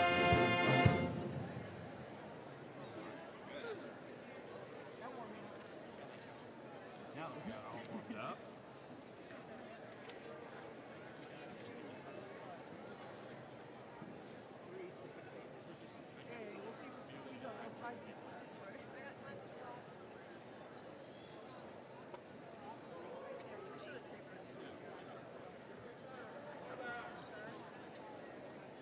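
A crowd murmurs softly in a large hall.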